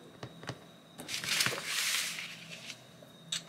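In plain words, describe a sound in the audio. Paper rustles and slides as sheets are moved around.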